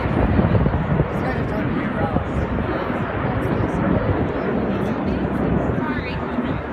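Jet planes roar in a loud, steady rumble.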